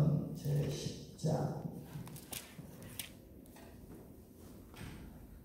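A middle-aged man speaks calmly into a microphone in a large echoing hall.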